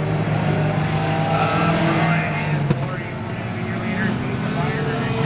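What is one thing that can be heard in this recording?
Car engines whine and rev up and down as cars pass close by.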